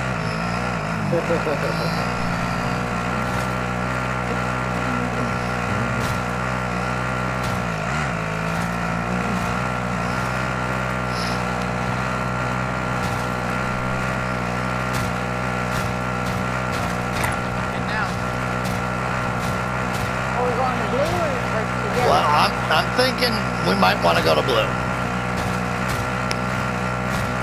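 A vehicle engine drones steadily.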